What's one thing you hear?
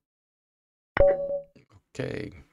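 A short chime sounds as a chess game ends.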